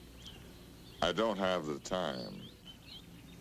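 A man answers in a low, rough voice.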